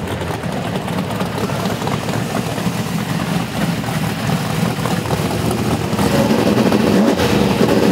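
A drag-racing V8 street car idles roughly with a lumpy, loud exhaust.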